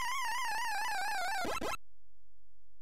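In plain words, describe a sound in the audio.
A video game jingle warbles and then falls quickly in pitch.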